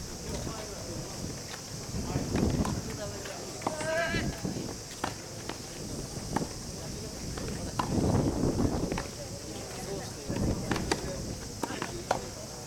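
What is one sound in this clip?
A tennis ball is struck with a racket, with sharp pops.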